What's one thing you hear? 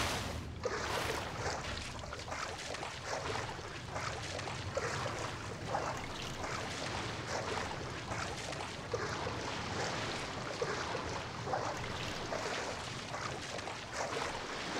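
Water splashes as a figure swims steadily.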